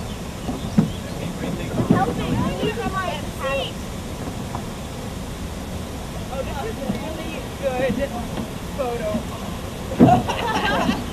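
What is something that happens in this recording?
Wooden paddles knock against a boat's gunwales.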